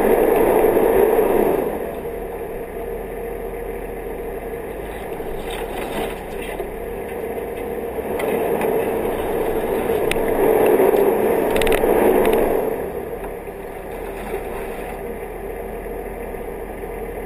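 Wind buffets the microphone in rushing gusts.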